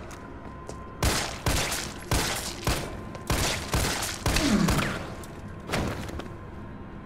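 A handgun fires repeated sharp shots.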